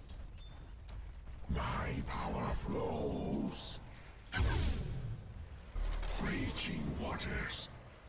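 Weapons clash and magic effects crackle in a fight.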